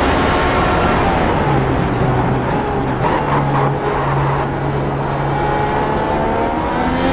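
A racing car engine drops low while braking into a slow corner.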